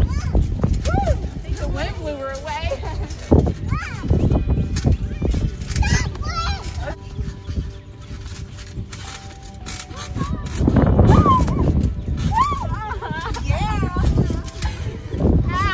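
A young girl laughs and squeals with excitement.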